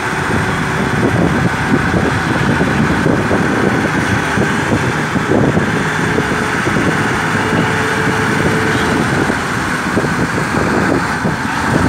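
Car engines idle and hum nearby in traffic.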